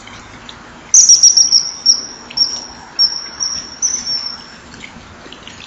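A small bird gives a burst of shrill, high piping calls close by.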